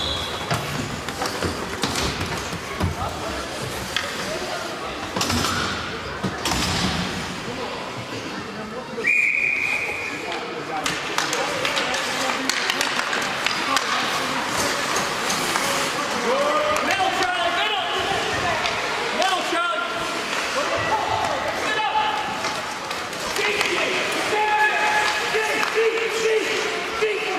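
Hockey sticks clack against the ice and a puck.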